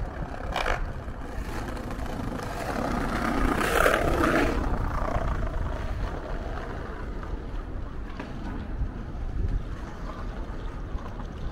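Wind rumbles steadily across an open outdoor space.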